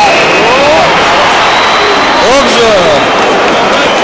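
Fans in a stadium crowd whistle shrilly.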